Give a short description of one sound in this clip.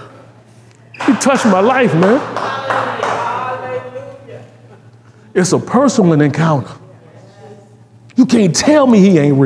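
A man speaks with animation into a microphone, in bursts with pauses, in a room with some echo.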